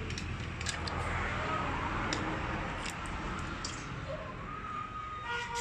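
Metal parts click and clink as a pump is taken apart by hand.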